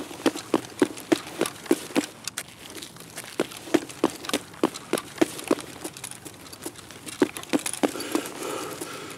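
Footsteps walk at a steady pace over hard ground.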